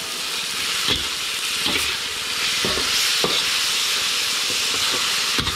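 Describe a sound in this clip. Meat sizzles loudly in a hot wok.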